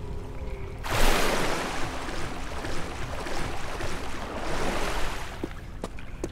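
Water splashes loudly as someone jumps in.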